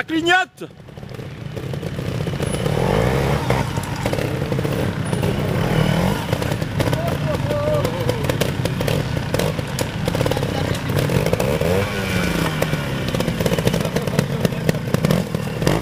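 A trials motorcycle engine putters and revs unevenly close by.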